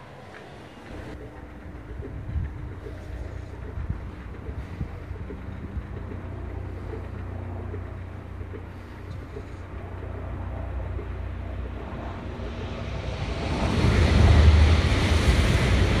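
Road traffic rumbles steadily outdoors.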